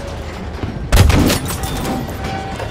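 A tank cannon fires with a loud boom.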